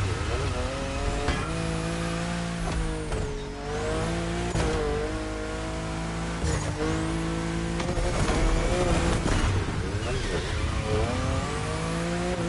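Tyres screech as a car drifts through corners.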